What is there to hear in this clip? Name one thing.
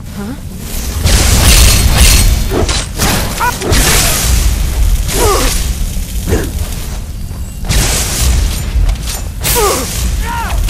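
Electric bolts crackle and roar in loud bursts.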